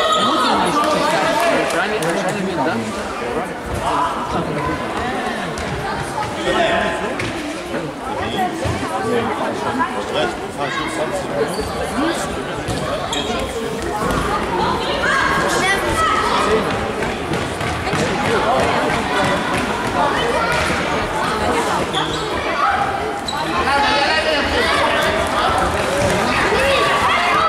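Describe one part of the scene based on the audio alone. Young players shout and call out in a large echoing hall.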